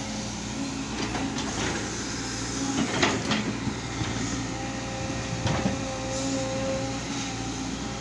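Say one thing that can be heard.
A digger's bucket scrapes and knocks against earth and rocks.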